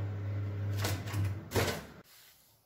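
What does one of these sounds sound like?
Fingers press buttons on a microwave oven.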